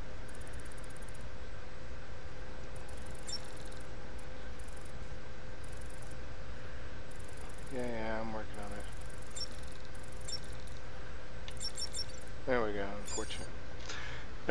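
A handheld device chirps with rapid electronic beeps.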